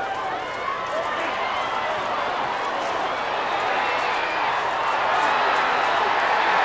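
A crowd cheers loudly as a play unfolds.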